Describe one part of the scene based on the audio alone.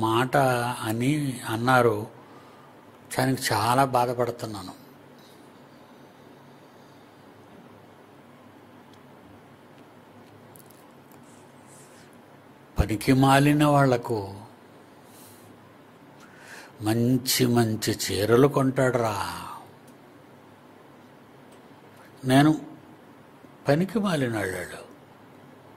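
An elderly man speaks slowly into a close microphone, pausing often.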